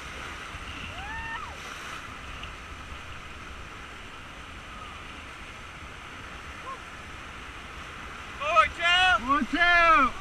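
Paddles splash in the water.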